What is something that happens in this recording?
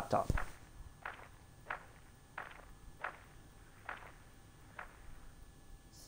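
Heavy footsteps thud slowly and evenly.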